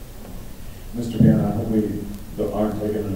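A man speaks through a loudspeaker in an echoing hall.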